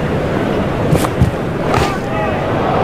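A bat strikes a ball with a sharp crack.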